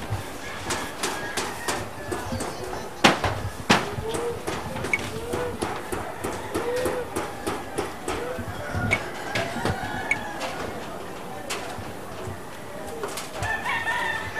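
Men hammer on sheet metal roofing in the distance.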